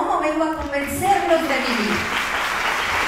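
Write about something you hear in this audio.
A woman speaks into a microphone in a large hall.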